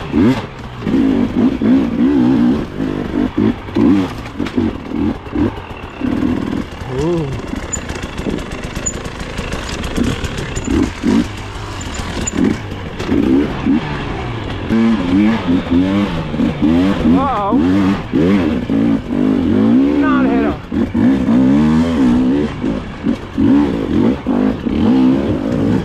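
A dirt bike engine revs up and down close by, rising and falling in pitch.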